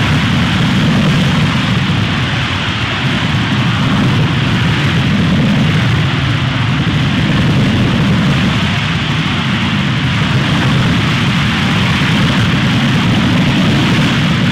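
A rocket engine roars steadily with a loud rushing hiss.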